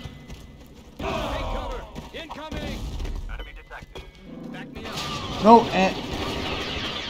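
Explosions burst with a deep, roaring boom.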